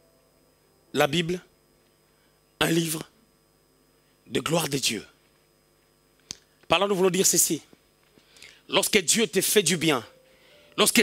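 A man preaches loudly and with animation through a microphone, in short bursts with pauses, in a room with a slight echo.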